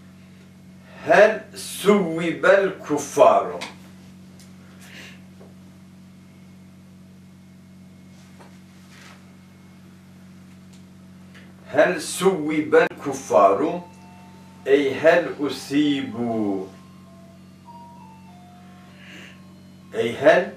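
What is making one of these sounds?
A middle-aged man speaks calmly and slowly, close to a microphone, in bursts with long pauses.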